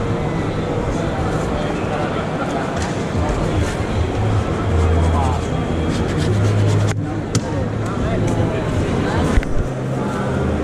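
Many men and women chatter in a busy, echoing room.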